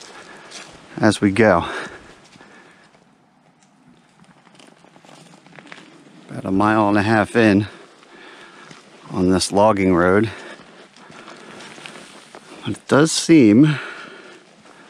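A man talks close by, calmly, in short bursts.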